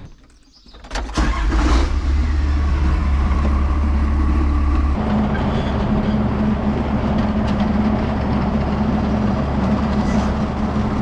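A tractor engine starts and idles with a steady low rumble.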